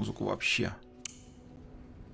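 A radio switch clicks once.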